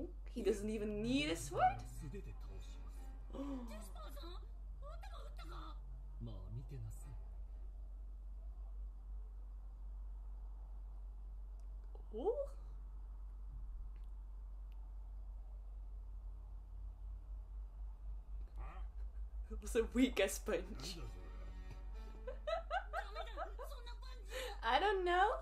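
A young woman talks and laughs with animation close to a headset microphone.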